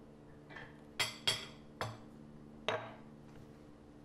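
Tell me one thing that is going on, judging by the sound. A knife scrapes across crisp toast.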